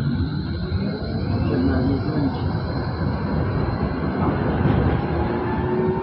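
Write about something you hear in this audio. A tram's motor hums and whines.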